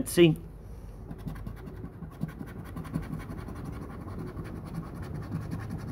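A coin scratches rapidly across a paper ticket close by.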